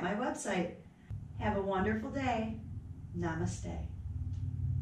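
A young woman speaks calmly and warmly close to a microphone.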